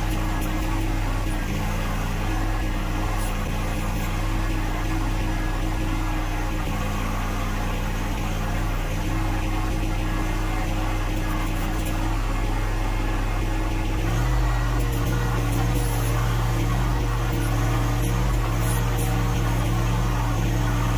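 A hydraulic pump whines as a backhoe arm moves.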